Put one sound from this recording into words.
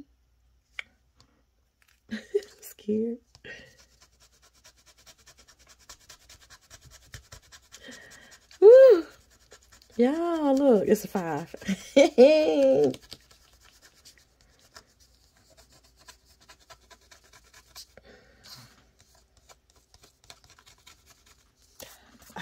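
A coin scratches softly across a card.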